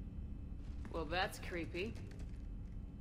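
A woman speaks briefly and calmly, close by.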